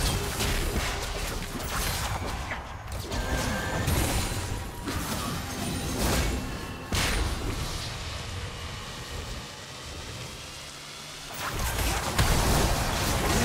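Spell blasts and hit effects crackle and whoosh in quick bursts.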